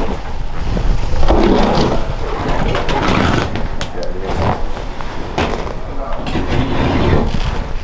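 Carpet rips as it is torn up from a floor.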